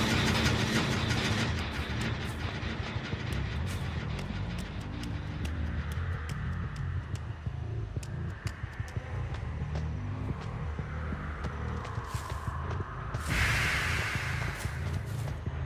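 Slow heavy footsteps thud on grass and pavement.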